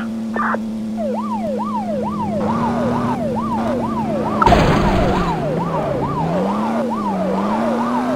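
A police siren wails rapidly up and down.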